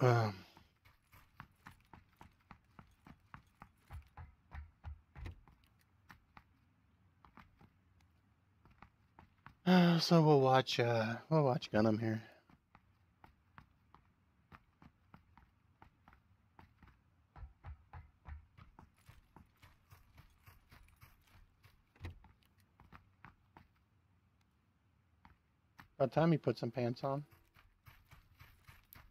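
Footsteps run quickly over grass and wooden floors.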